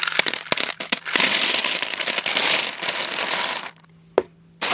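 A pile of small hard pieces clatters as it is poured into a plastic tub.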